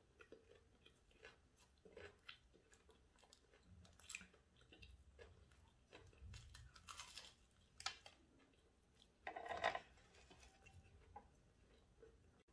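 A woman chews food with wet, smacking sounds close to a microphone.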